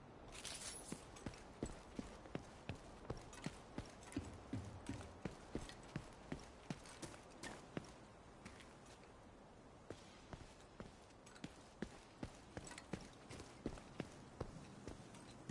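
Footsteps thud steadily on pavement.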